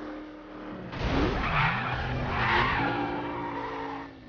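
A car crashes into another car with a loud metallic bang.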